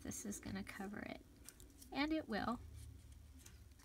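Paper rustles softly as it is folded by hand.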